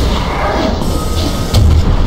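A fireball whooshes past.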